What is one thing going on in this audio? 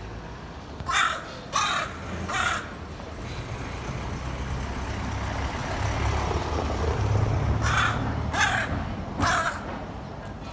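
A crow caws loudly close by.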